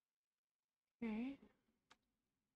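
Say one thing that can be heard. A young woman speaks briefly into a nearby microphone.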